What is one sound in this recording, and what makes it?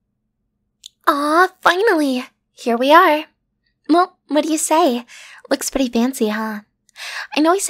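A young woman speaks softly and playfully, close to a microphone.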